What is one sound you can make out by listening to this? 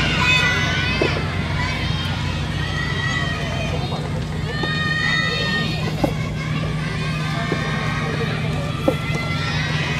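Tennis balls are struck with rackets, with sharp pops at a distance.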